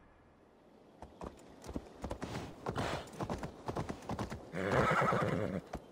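A horse gallops on a stony path, its hooves clattering.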